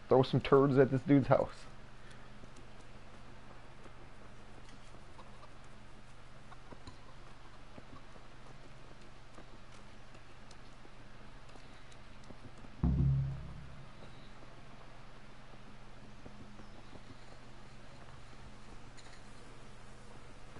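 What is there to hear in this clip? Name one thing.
Footsteps run on a dirt path.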